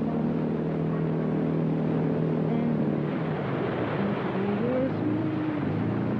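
Water splashes and hisses against a speeding boat's hull.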